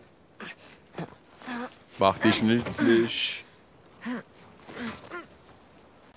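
A young woman grunts with effort while climbing.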